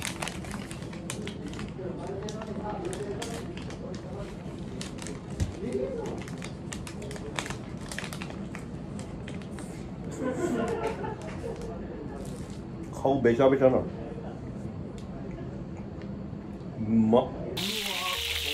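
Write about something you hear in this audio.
A young man chews food noisily close by.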